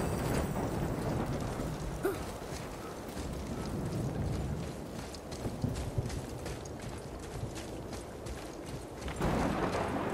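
Heavy footsteps crunch along a dirt path.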